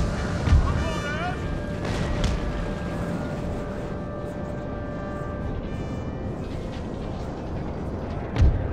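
Muskets fire in heavy booming volleys.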